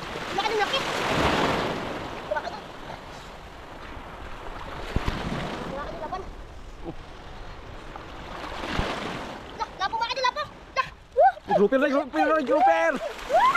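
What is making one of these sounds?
A young boy splashes through shallow water.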